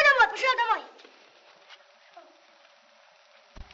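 A small campfire crackles.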